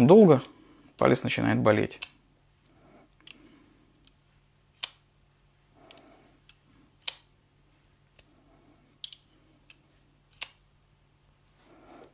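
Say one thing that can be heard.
A folding knife's blade snaps open and shut with sharp clicks.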